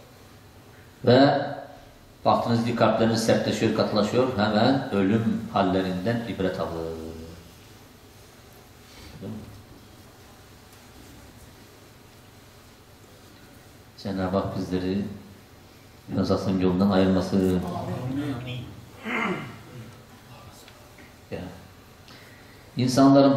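An elderly man reads aloud into a microphone in a slow, chanting voice, with pauses.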